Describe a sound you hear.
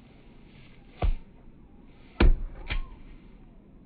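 A soccer ball thumps against a car.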